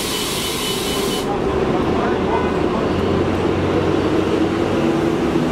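A diesel city bus idles close by.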